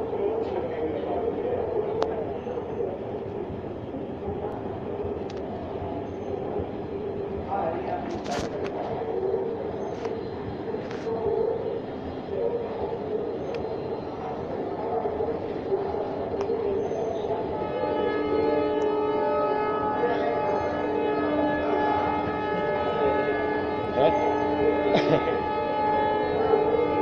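An escalator hums and rattles steadily in a large echoing space.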